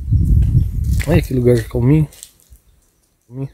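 A man speaks close to a phone microphone.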